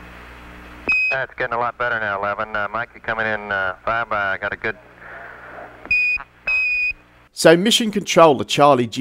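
A man speaks calmly over a crackly radio link.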